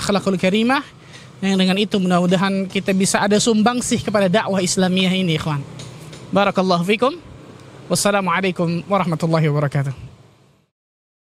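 A man speaks calmly into a microphone close by.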